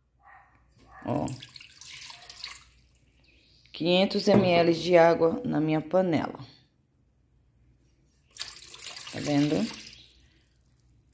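Water pours and splashes into a pot.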